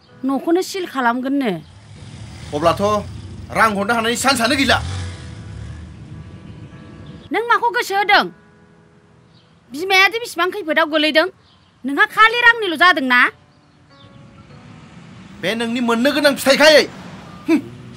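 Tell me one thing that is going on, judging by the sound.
A young man talks on a phone with animation.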